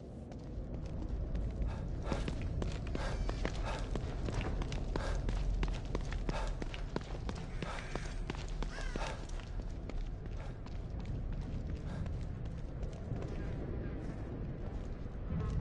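Footsteps run quickly over wet ground.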